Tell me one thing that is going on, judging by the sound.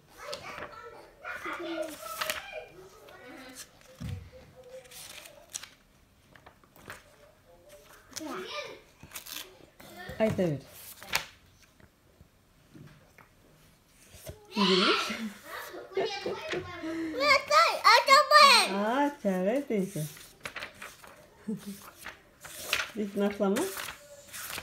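A toddler babbles and sings close by.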